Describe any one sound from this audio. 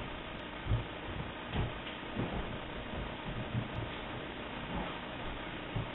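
An exercise ball thumps softly against a wooden floor.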